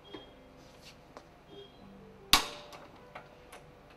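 A wrench ratchets.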